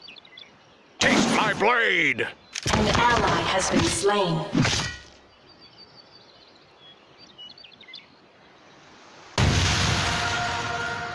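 Game fighting effects clash and whoosh in loud bursts.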